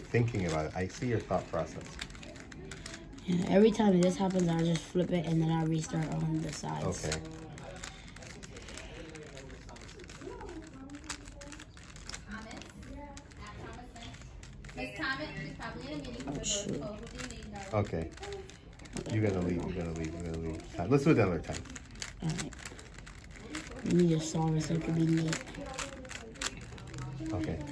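A plastic puzzle cube clicks and clacks as its layers are twisted.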